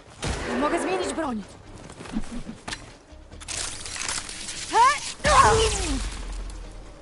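Machine creatures roar and screech.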